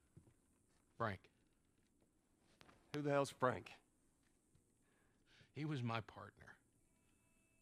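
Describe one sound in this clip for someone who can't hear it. A man answers in a low, calm voice.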